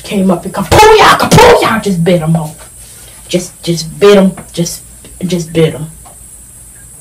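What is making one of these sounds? A young woman sings loudly and with animation, heard through a small speaker.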